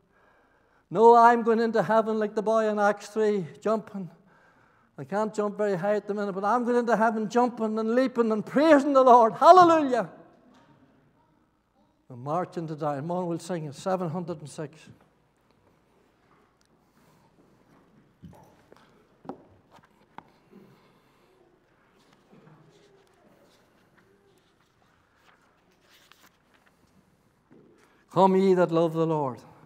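An elderly man speaks with emphasis through a microphone, pausing between phrases.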